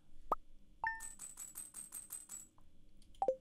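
Quick electronic ticks sound as scores count up.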